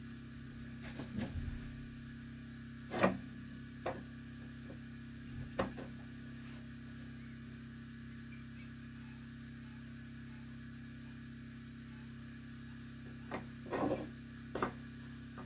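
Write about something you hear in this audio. A cloth rubs against a metal stove.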